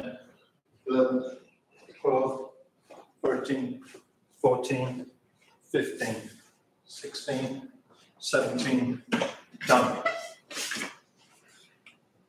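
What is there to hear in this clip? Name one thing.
A middle-aged man speaks calmly and clearly nearby, in a quiet echoing room.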